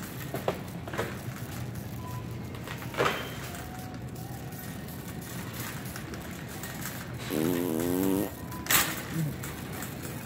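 A shopping cart knocks and rattles now and then.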